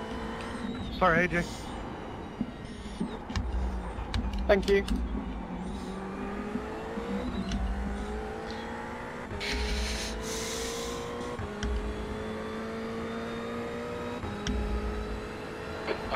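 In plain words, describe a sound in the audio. A racing car engine drones steadily and rises in pitch as it revs through the gears.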